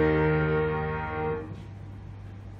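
A grand piano plays a final chord that rings out and fades in an echoing room.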